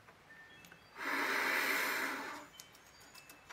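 A saxophone plays a short breathy note up close.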